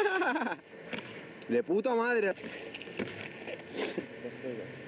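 A skateboard snaps and clacks as it lands.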